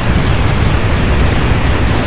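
An explosion bursts close by.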